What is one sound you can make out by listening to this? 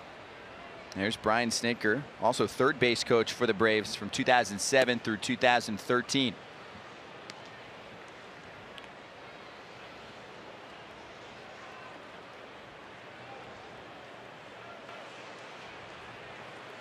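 A stadium crowd murmurs steadily outdoors.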